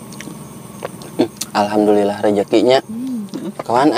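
A young woman chews food with her mouth full.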